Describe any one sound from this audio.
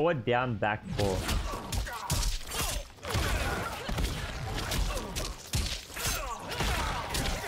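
Fighting game sound effects of hits and whooshes play.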